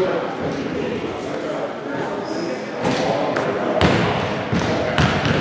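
Young people chatter at a distance in a large echoing hall.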